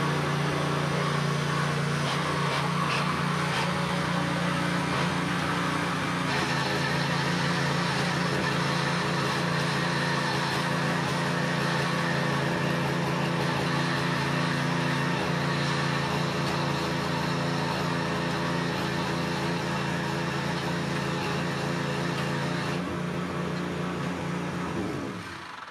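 A small petrol tiller engine runs steadily with a loud, buzzing drone.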